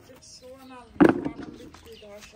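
A plastic bucket thumps down on the paving.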